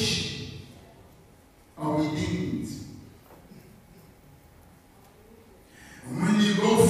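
A man preaches with fervour into a microphone over a loudspeaker system, in a large room with reverberation.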